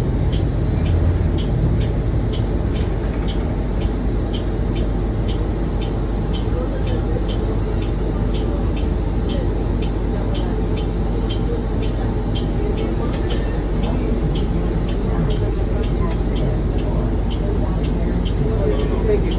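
A bus engine rumbles steadily as the bus drives along.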